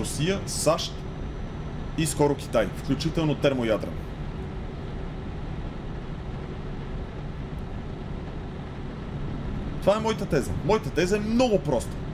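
A man talks animatedly into a close microphone.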